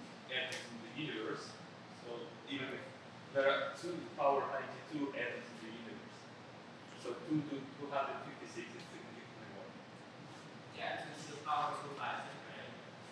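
A young man speaks calmly into a microphone in a room with a slight echo.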